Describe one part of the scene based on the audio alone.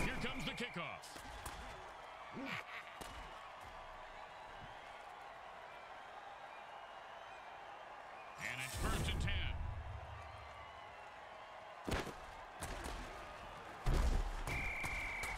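Armoured players crash together in heavy tackles with loud thuds.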